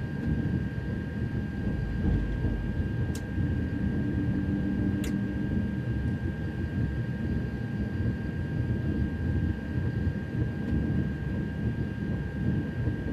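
A train's electric motor hums with a steady high whine.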